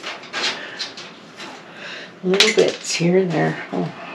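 A plastic drawer rattles as it is handled.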